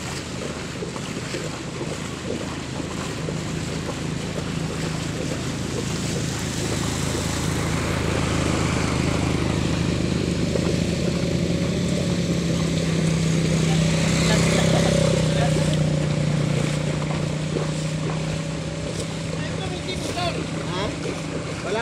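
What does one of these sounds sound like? Water splashes and swishes around wheels pushed through a flood.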